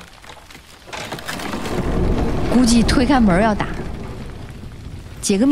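A heavy wooden gate scrapes and rumbles open.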